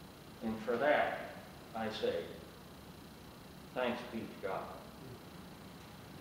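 A man speaks slowly with long pauses in a large echoing hall.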